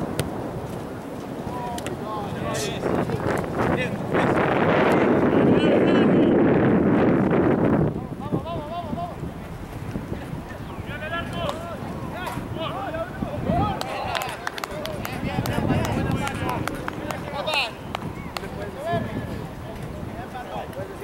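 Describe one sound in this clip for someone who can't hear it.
Young women shout to each other across an open outdoor field.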